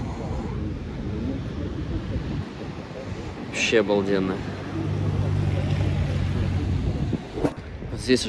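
Waves crash and wash against the shore below.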